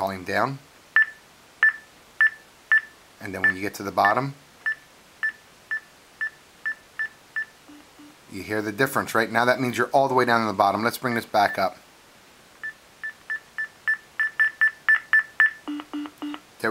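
An electronic device beeps briefly with each button press.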